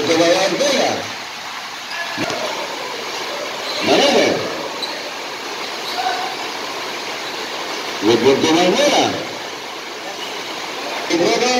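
Young men shout to each other across an echoing court.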